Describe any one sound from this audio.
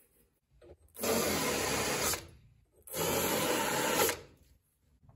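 A handheld power tool whirs in two short bursts.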